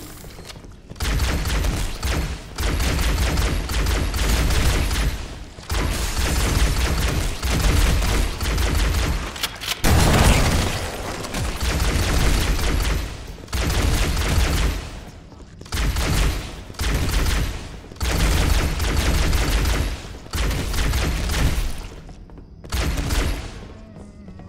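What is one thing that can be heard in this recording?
A plasma gun fires rapid bursts of buzzing shots.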